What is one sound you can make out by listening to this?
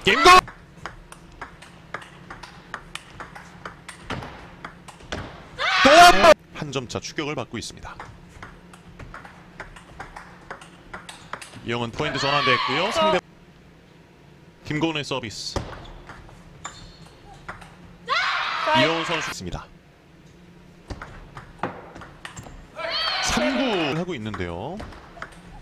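A ping-pong ball clicks rapidly back and forth off paddles and a table.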